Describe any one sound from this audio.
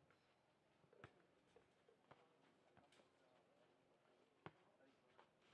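Tennis balls are struck with rackets, thudding sharply outdoors.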